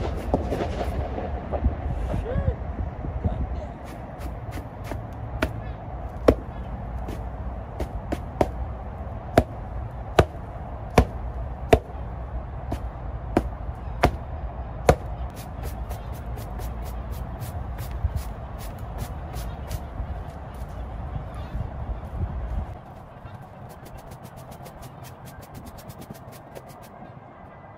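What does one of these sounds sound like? A stiff brush scrubs briskly across a rubber mat.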